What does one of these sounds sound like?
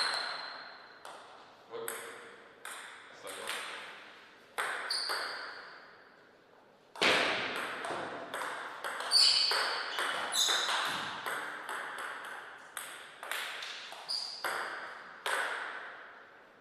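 A table tennis ball clicks sharply off paddles and the table, echoing in a large hall.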